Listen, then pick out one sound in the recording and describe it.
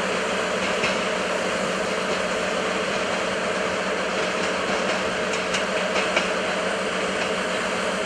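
Train wheels squeal faintly on curved track.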